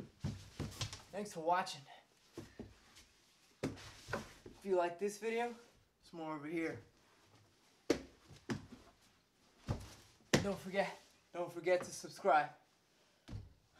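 A young man talks with animation close by.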